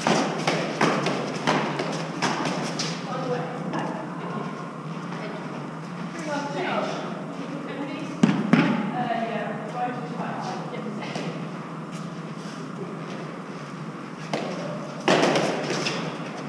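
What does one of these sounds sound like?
Trainers scuff and patter on a concrete floor.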